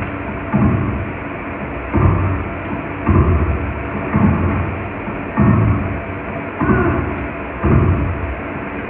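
Tennis racquets strike a ball back and forth in a video game rally.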